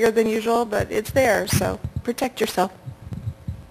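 A middle-aged woman speaks into a handheld microphone, heard through loudspeakers in an echoing hall.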